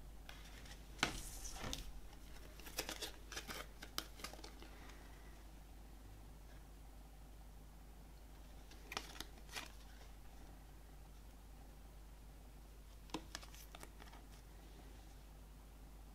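Stiff cards click and slide against each other as they are shuffled in the hand.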